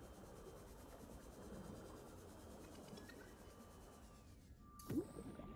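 A small submersible's motor hums and rumbles underwater.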